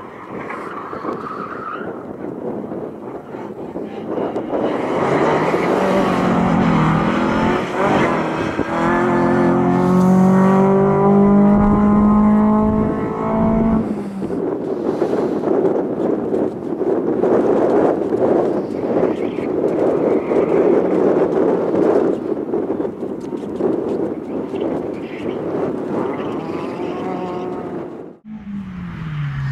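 Tyres squeal on tarmac as a car slides.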